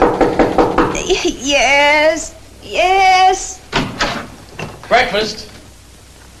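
A young woman's voice sings out brightly and sleepily nearby.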